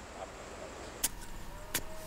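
A metal trowel scrapes and digs into dry soil.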